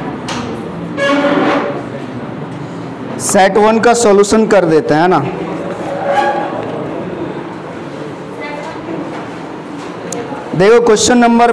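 A man speaks through a clip-on microphone, explaining calmly.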